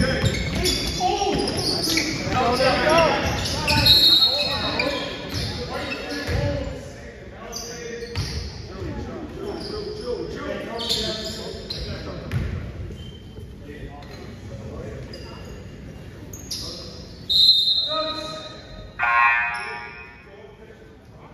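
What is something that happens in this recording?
Sneakers squeak sharply on the gym floor.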